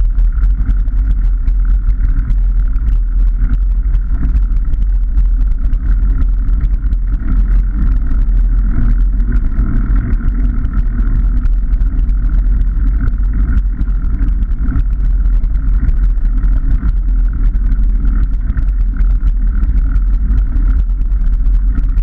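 Bicycle tyres roll and rumble over a rough path.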